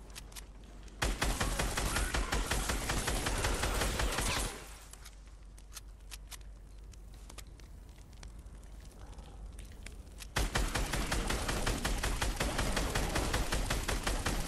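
Rapid gunfire bursts ring out in a video game.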